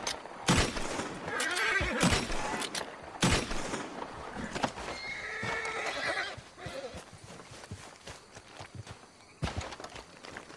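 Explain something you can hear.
A gun fires loud shots that echo outdoors.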